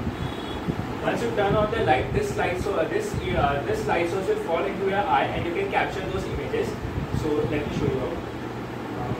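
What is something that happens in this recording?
A young man speaks calmly nearby, explaining.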